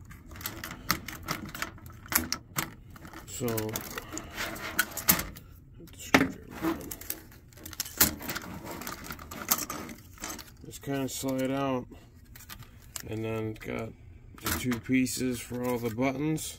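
Plastic parts click and clatter as an electronic device is taken apart.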